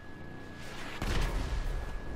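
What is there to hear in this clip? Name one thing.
A car lands with a heavy thud.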